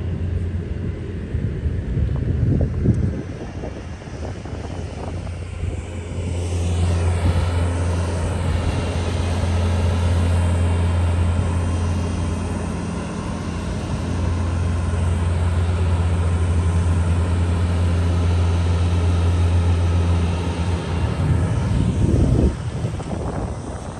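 A plow blade scrapes and pushes heavy snow.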